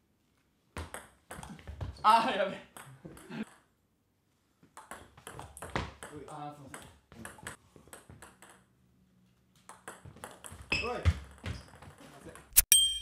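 A ping pong ball clicks back and forth on a table and paddles.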